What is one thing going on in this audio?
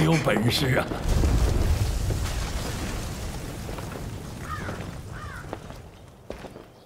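Magical smoke bursts with a deep whoosh and rumble.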